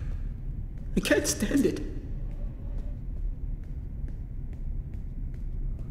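Footsteps tap slowly on pavement.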